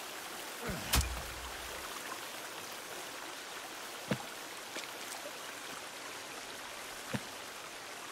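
Short clicks sound as small items are picked up.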